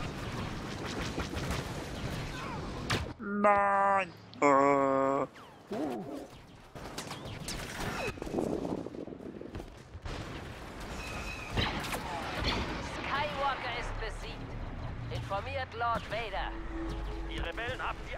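Laser blasters fire in rapid bursts.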